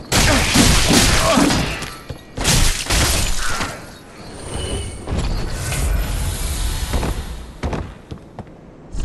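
A sword slashes and strikes with heavy thuds.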